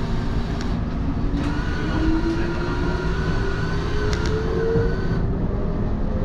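A train's motor whines, rising slowly in pitch.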